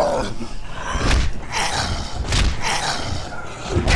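A heavy hammer thuds into a body with wet smacks.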